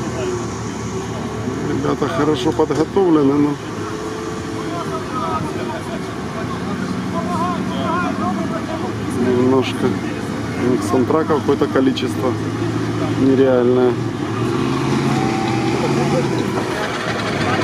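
Water splashes and churns under the tyres.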